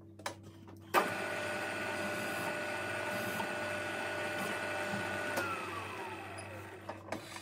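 A milling machine cuts into metal with a loud, high whine that drops in pitch as it slows.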